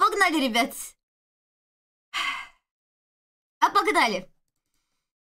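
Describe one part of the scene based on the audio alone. A young woman speaks with animation close to a microphone, in short bursts.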